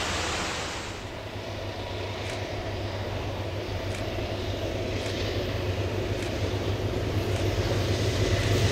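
A diesel locomotive rumbles closer and grows louder.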